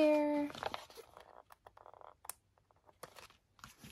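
A sticker peels off a sheet with a soft tearing sound.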